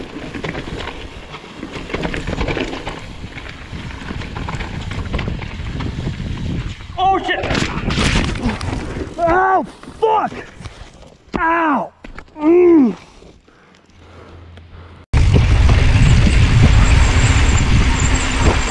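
Mountain bike tyres roll over a dirt trail.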